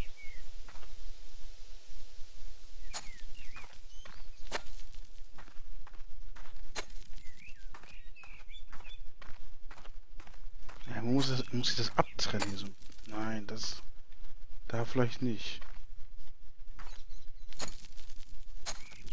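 A rake scrapes through loose soil again and again.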